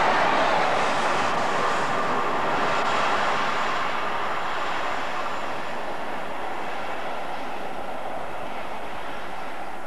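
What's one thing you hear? A train rumbles along the tracks in the distance.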